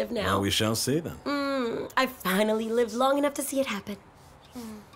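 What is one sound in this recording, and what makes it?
A woman talks playfully close by.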